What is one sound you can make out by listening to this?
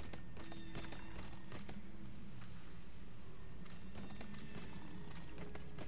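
Boots and hands clank on a metal ladder.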